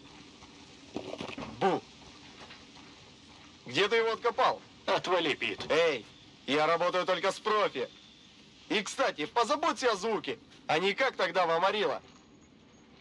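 A man speaks at close range in a low, calm voice.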